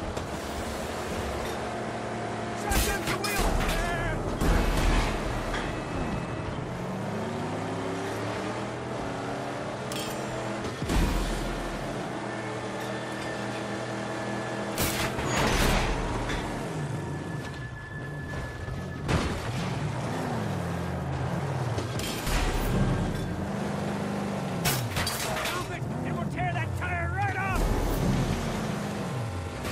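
A video game car engine roars and revs.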